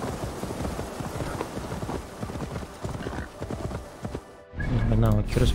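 A horse gallops over grass.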